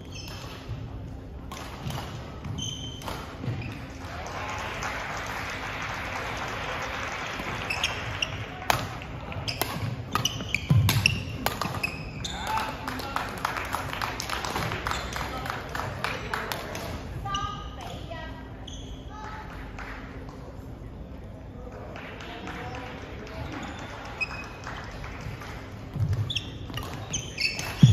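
Voices of a crowd chatter in a large echoing hall.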